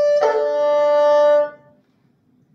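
A bowed two-string fiddle plays a long sustained note that ends sharply.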